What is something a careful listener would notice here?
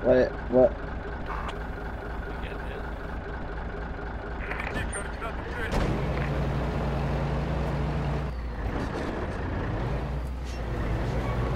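A truck engine idles with a low steady rumble, then revs up as the truck drives off.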